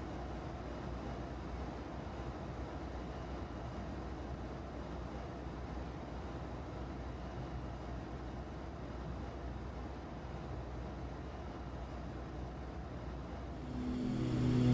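A small propeller plane's engine drones steadily from inside the cockpit.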